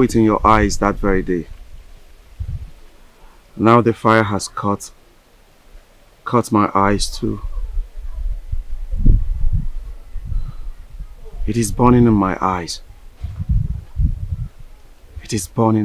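A man speaks in a low voice close by.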